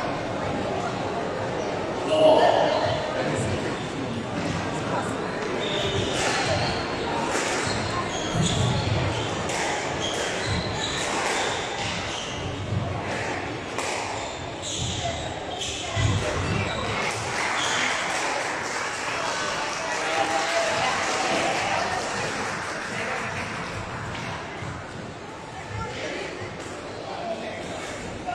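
A squash ball smacks against the walls, echoing in a large hall.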